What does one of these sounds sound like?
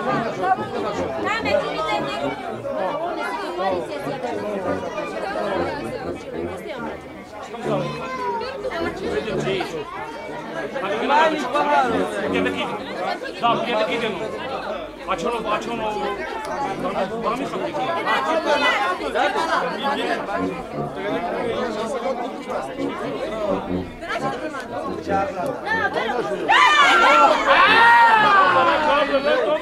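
A crowd of men and women chatter nearby.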